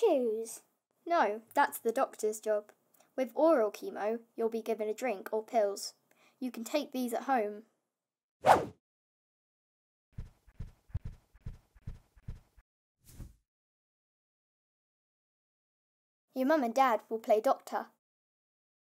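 A boy speaks calmly and clearly close by.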